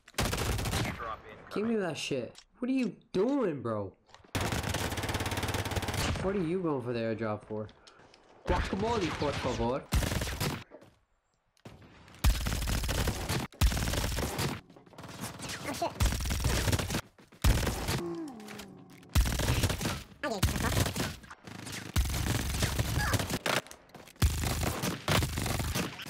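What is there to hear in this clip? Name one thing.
Rapid gunfire bursts from a video game.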